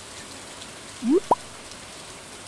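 A short rising pop sounds as something is picked up.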